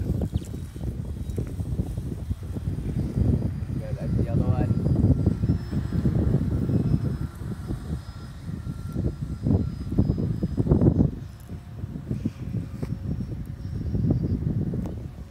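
A small drone whines faintly high overhead.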